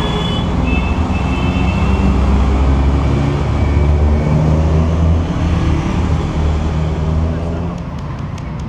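A motorcycle rides by and fades away.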